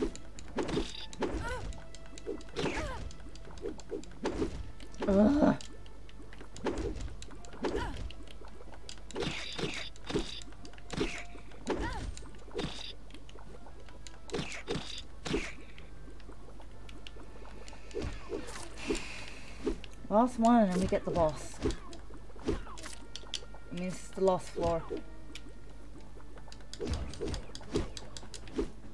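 Weapon blows swish and thud in quick bursts.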